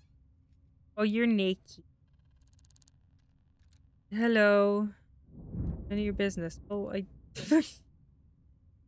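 A young woman speaks into a close microphone.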